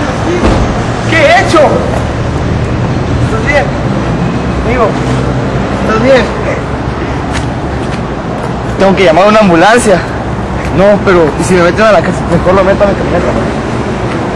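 Several young men talk and laugh loudly.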